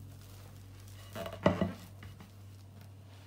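A metal rack rattles and clinks as it is set down.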